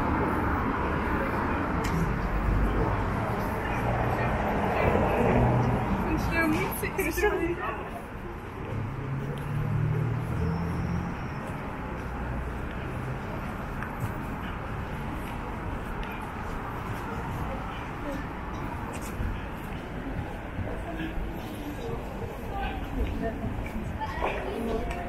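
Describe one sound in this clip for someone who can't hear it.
Footsteps tap on a pavement.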